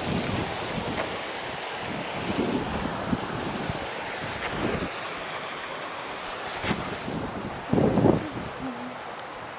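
Water trickles and splashes over a small spillway nearby.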